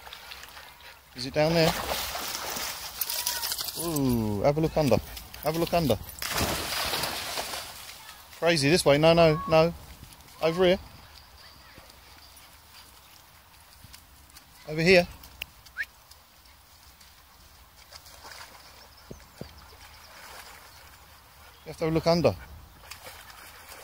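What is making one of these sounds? A dog splashes as it swims through water.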